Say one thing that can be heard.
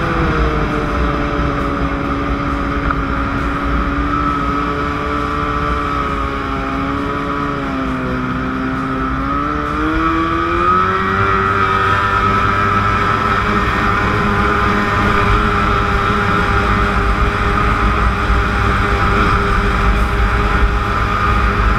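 A boat engine roars steadily, dipping in pitch and then rising again.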